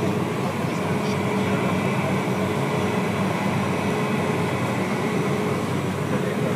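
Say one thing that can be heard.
A small plane's engine drones loudly and steadily from inside the cabin.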